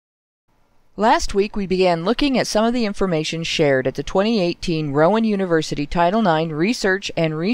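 A woman speaks with animation, close by.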